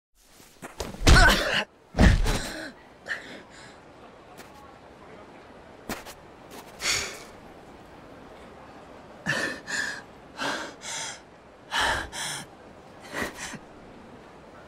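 A young man groans and gasps in pain nearby.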